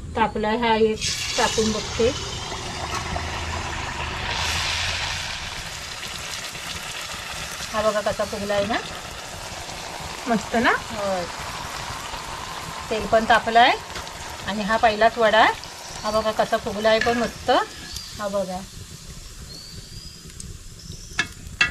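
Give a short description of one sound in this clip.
Oil sizzles and crackles as dough fries in a hot pan.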